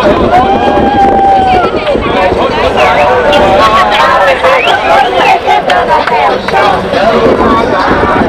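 Young adults on a pedal bar cheer and shout with excitement.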